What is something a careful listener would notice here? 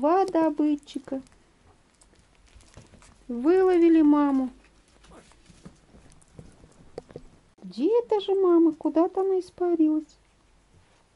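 A small dog howls and whines in long, wavering cries.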